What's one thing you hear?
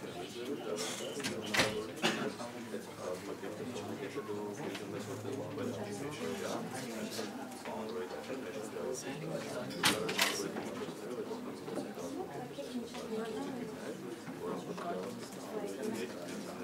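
A crowd of young people murmurs and chatters in a room.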